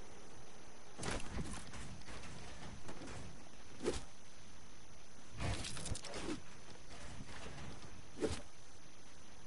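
Building pieces snap into place in a video game with sharp clacks.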